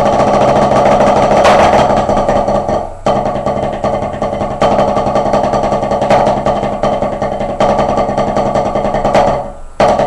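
A drummer plays a fast, steady roll on a drum with sticks, close by.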